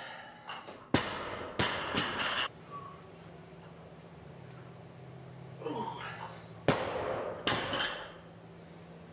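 A loaded barbell crashes onto the floor and its plates rattle.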